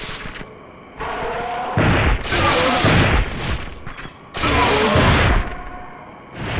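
A gun fires energy blasts.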